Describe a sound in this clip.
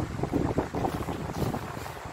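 Paper rustles as a hand slides it across a table.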